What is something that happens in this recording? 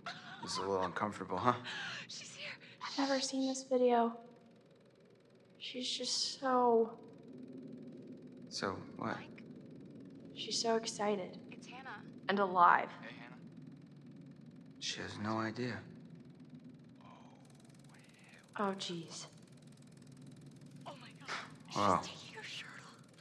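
A young woman speaks tensely and anxiously, close by.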